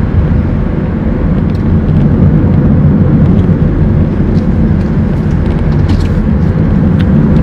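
A car's engine and tyres rumble steadily from inside the car.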